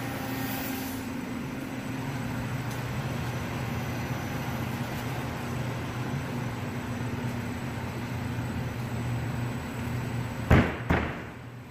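A machine with rollers hums steadily.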